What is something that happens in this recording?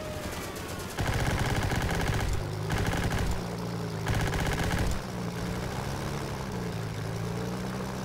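An aircraft engine roars loudly and steadily.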